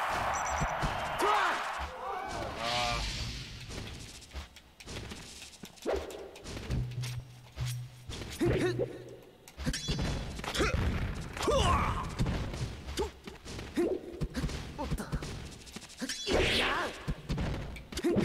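Game characters cry out in short yelps during the fight.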